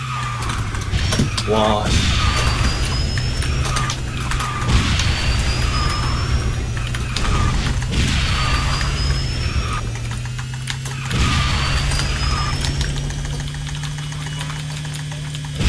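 A racing game's kart engine hums steadily.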